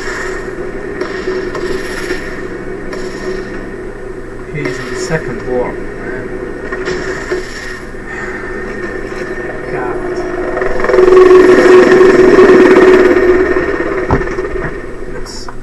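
A vehicle engine hums steadily as it drives along.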